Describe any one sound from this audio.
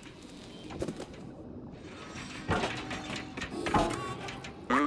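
Small footsteps thud on hollow wooden logs and barrels.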